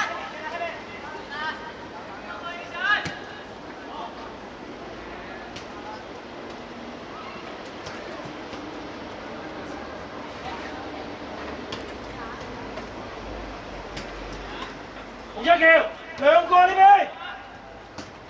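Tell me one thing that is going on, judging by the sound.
Young players shout to each other across an open pitch outdoors.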